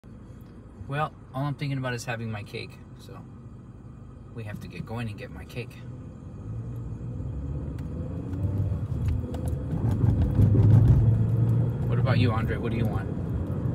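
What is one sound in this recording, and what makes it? A car engine hums steadily and grows louder as the car speeds up.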